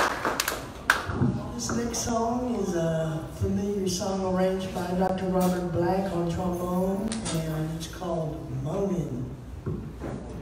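A man sings into a microphone, echoing in a large room.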